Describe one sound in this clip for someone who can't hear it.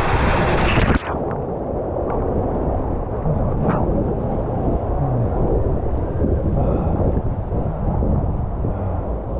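Water runs and gurgles along an open channel outdoors.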